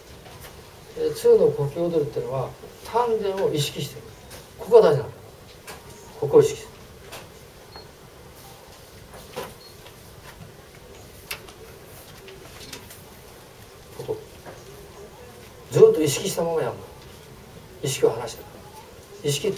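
An elderly man speaks calmly into a small microphone, pausing often.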